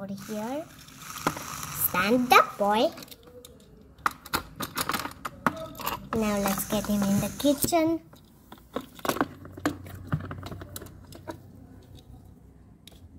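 Small plastic toy pieces click and tap against each other.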